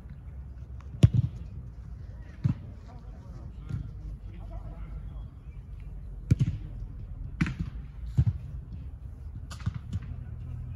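A football is kicked with sharp thuds outdoors.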